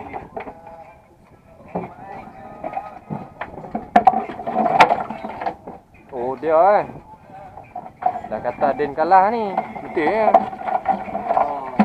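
Metal wire and tackle clink and rattle.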